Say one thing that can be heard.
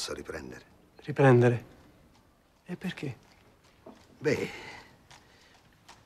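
Another man answers calmly, close by.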